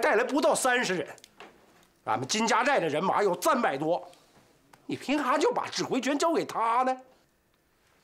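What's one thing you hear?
A middle-aged man speaks forcefully and close by.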